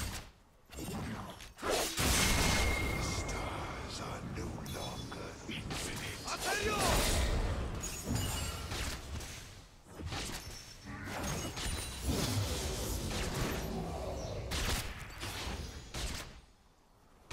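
Video game combat sounds clash and whoosh.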